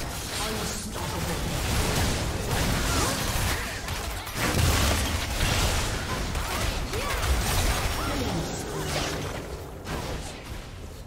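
Video game battle sounds of spells bursting and weapons striking clash rapidly.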